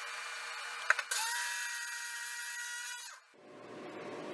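A small electric grinder whirs loudly for a couple of seconds.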